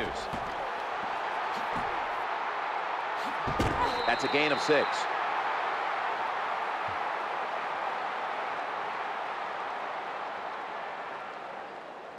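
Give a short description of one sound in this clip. A large stadium crowd roars steadily, then slowly fades.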